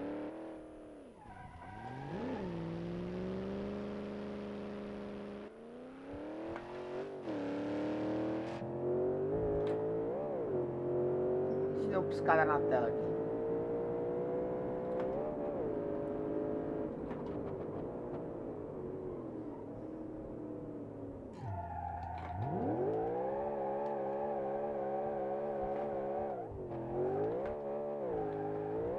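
A car engine revs up and down as it speeds along.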